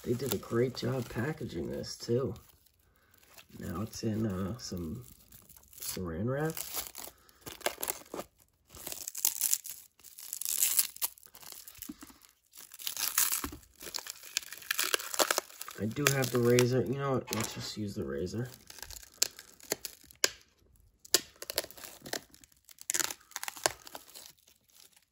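Plastic wrap crinkles and rustles close by.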